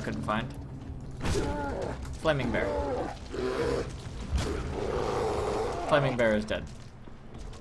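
A bear growls and roars nearby.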